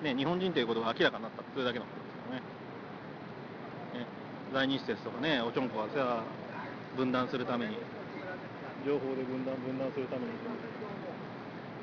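Men talk loudly outdoors, heard from a short distance.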